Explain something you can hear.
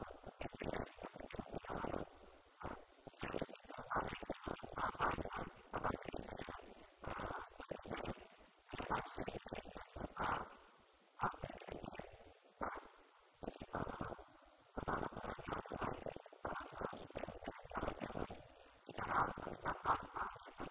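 An elderly man speaks with animation into a microphone, heard through a loudspeaker in an echoing room.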